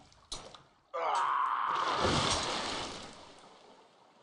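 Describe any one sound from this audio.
A man lets out a long, loud yell.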